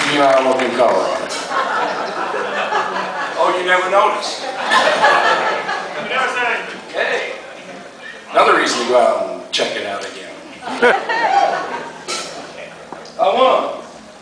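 A man speaks to an audience through a microphone.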